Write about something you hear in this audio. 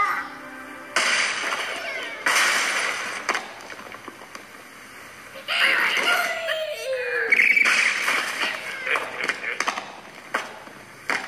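Wooden and stone blocks crash and clatter in a game.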